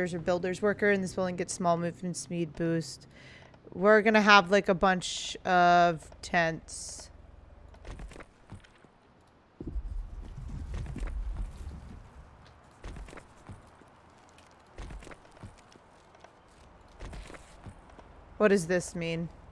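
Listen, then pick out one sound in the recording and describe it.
A young woman talks with animation into a close microphone, pausing at times.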